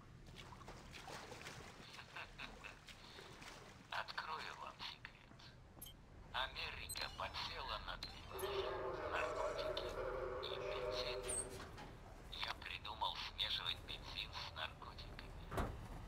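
A man talks calmly into a microphone.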